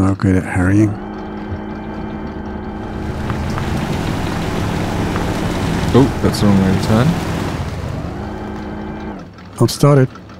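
A truck engine hums steadily as it climbs.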